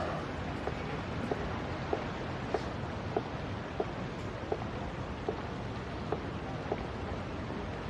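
High heels click on hard pavement at a steady walking pace.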